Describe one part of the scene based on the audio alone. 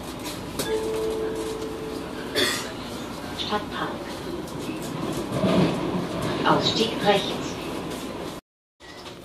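A train rumbles and rattles steadily along its tracks, heard from inside a carriage.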